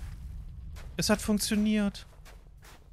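A young man speaks briefly with animation close to a microphone.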